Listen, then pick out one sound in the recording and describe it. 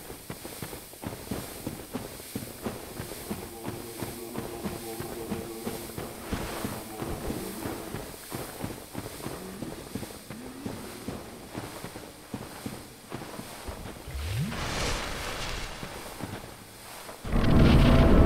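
Armoured footsteps clank steadily on stone.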